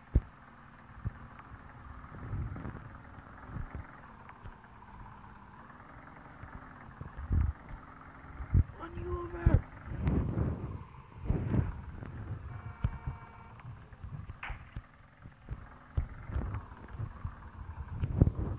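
A motorbike engine hums steadily as it rides along.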